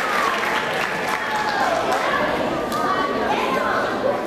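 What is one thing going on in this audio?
Young children call out and chatter in high voices.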